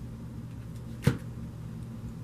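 A deck of cards is set down with a soft tap.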